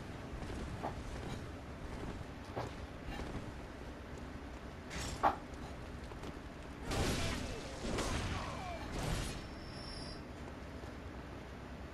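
Footsteps run over wet cobblestones.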